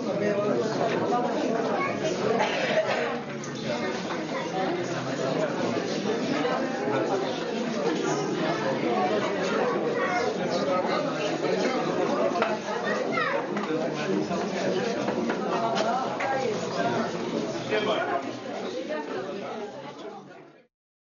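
A crowd of men and women chatters all around in an echoing room.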